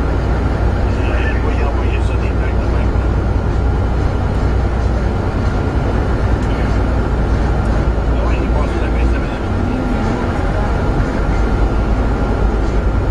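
Traffic roars steadily through a tunnel, echoing off the walls.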